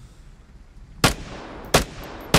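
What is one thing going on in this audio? A rifle fires sharp, echoing shots.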